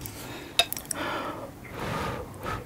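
A woman blows softly on hot food close to a microphone.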